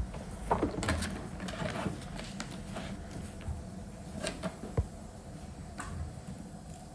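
Paper rustles and slides against paper.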